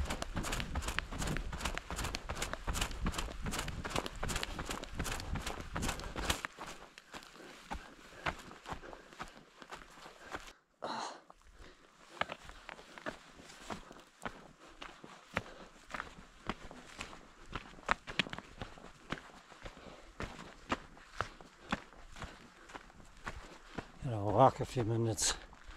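Footsteps crunch on dry forest ground and stones.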